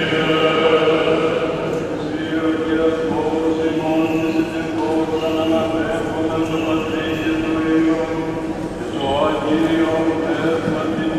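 Men chant a slow, drawn-out melody in a large echoing hall.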